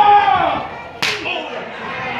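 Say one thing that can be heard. A sharp slap of a hand striking a body rings out once.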